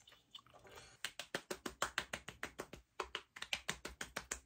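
Hands pat quickly on a face.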